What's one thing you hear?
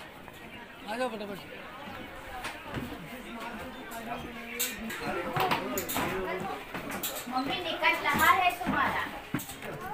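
Footsteps climb stone stairs.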